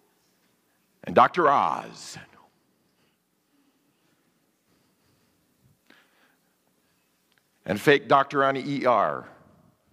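A man speaks with emphasis into a microphone, in a large echoing hall.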